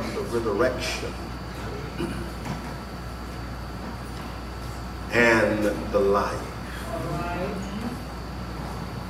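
A man preaches with feeling through a microphone, with long pauses between phrases.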